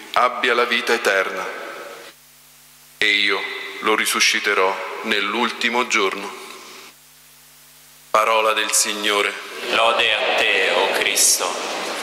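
A man chants prayers into a microphone in a large echoing hall.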